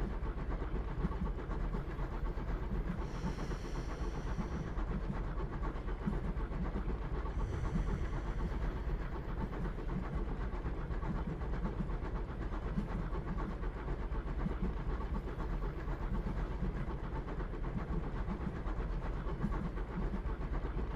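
A train rumbles along the rails.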